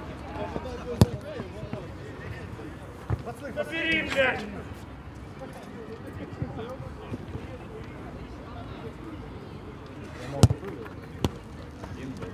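A football thuds off a boot.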